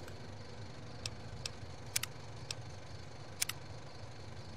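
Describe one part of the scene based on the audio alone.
Menu clicks tick softly a few times.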